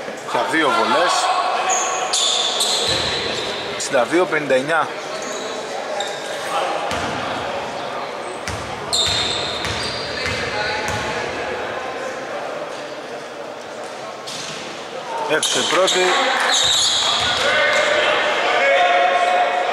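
Sneakers squeak sharply on a hard court floor, echoing in a large hall.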